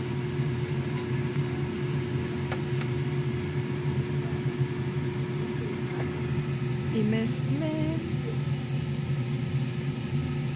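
Meat sizzles steadily on a hot grill.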